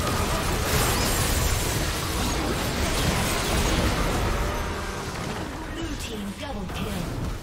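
Spell effects crackle and boom in a busy battle.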